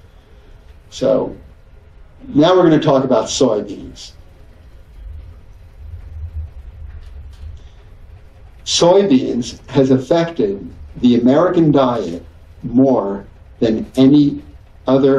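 A middle-aged man speaks calmly into a microphone in a large room, with pauses.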